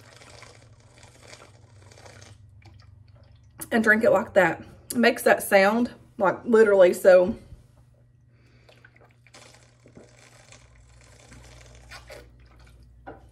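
A woman gulps water from a plastic bottle.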